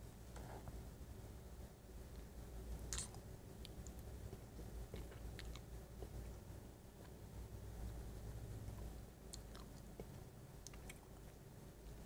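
A man makes soft wet mouth clicks close to a microphone.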